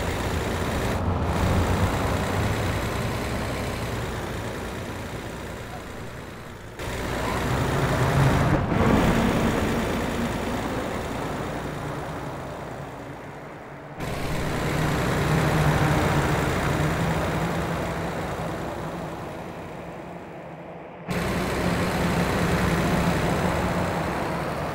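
A diesel semi-truck engine drones as the truck drives along a road.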